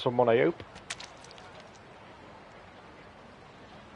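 A fish splashes at the surface of the water.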